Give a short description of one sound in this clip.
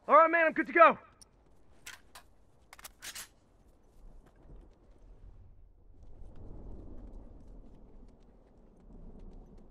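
Footsteps crunch over rough ground.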